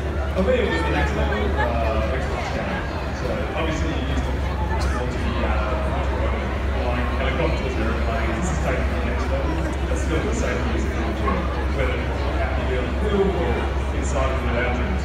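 A crowd of spectators chatters nearby and far off, outdoors.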